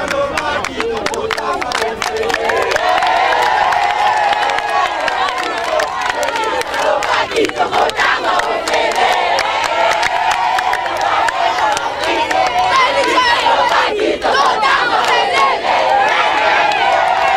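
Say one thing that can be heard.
A crowd of teenagers chants and shouts loudly, close by.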